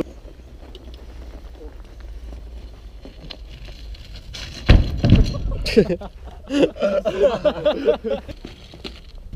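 Bicycle tyres crunch over snow.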